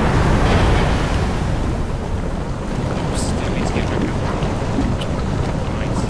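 Flames roar nearby.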